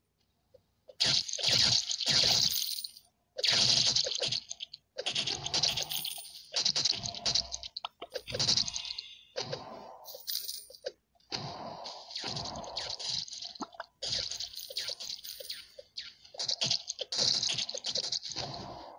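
Game laser blasts and hit effects crackle and burst in quick bursts.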